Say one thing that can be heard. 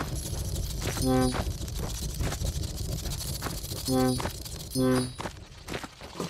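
Short bright chimes ring out as treasure is picked up in a video game.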